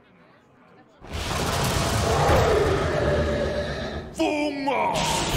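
Loud magical sound effects burst and ring out from a card game.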